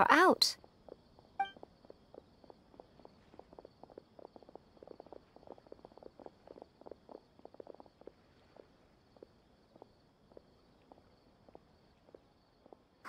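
Footsteps patter softly on stone.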